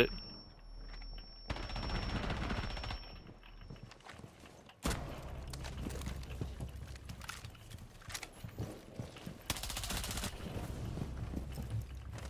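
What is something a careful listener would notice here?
A rifle fires in quick bursts.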